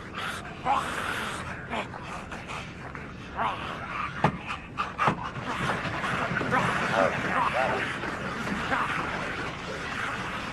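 People shout and scream in panic nearby.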